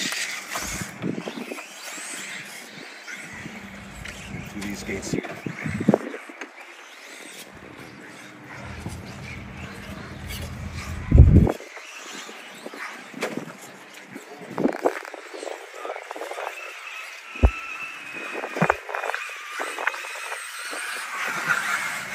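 A small electric motor whines as a toy truck crawls over rocks.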